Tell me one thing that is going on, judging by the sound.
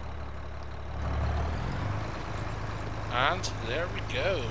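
A tractor engine revs up as the tractor pulls away.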